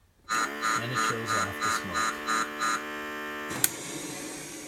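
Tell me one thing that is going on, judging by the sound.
An electronic prop pack plays rapid pulsing beeps.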